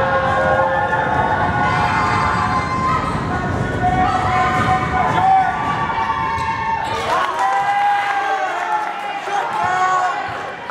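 A crowd of spectators talks and murmurs in an echoing gym.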